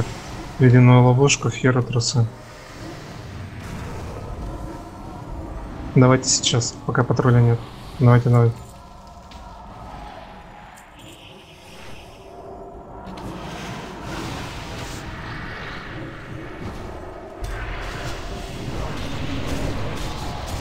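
Fantasy game combat sounds clash and whoosh with spell effects.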